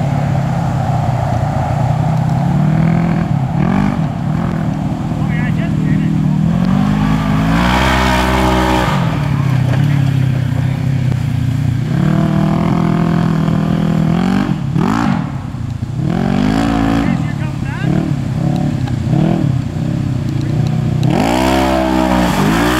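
An off-road vehicle's engine revs up and down loudly.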